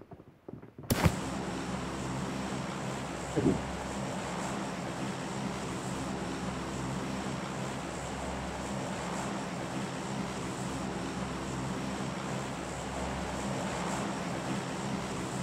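A propeller plane's engines drone steadily.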